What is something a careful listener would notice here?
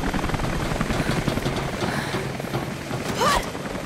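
A young woman speaks breathlessly.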